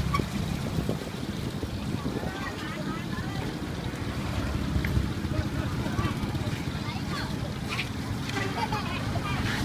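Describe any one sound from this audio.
Hot oil sizzles and bubbles steadily in a deep fryer.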